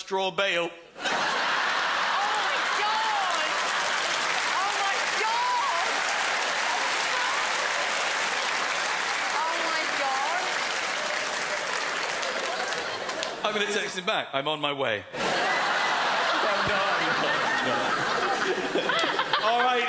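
A large audience laughs loudly in an echoing hall.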